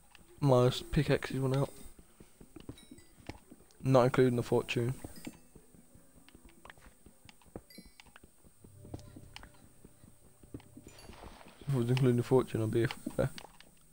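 A pickaxe chips and taps at stone in quick, repeated knocks.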